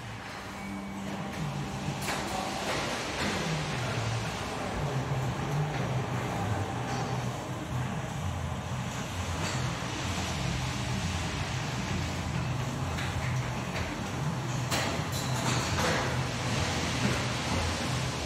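A machine hums steadily in a large echoing hall.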